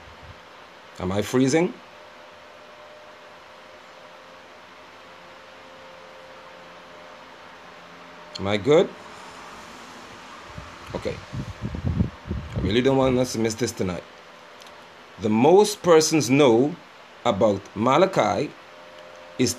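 A middle-aged man speaks calmly and close to the microphone, with pauses.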